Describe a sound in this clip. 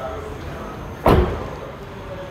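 A car door slams shut with a heavy thud.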